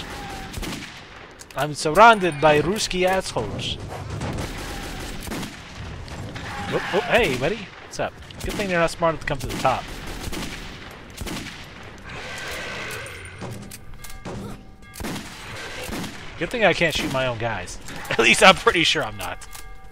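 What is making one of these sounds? A gun fires in short, loud bursts.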